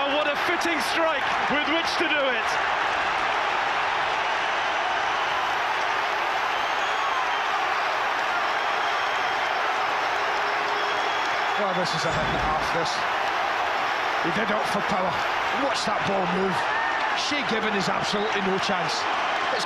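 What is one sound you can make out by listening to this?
A huge stadium crowd roars and cheers steadily.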